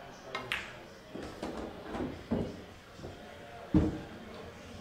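Pool balls clack together.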